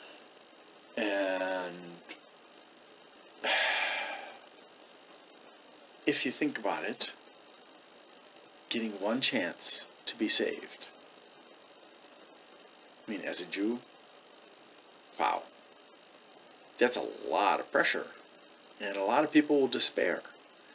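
A man talks calmly and close up, with pauses between phrases.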